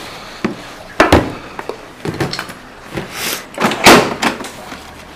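A helmet knocks against plastic.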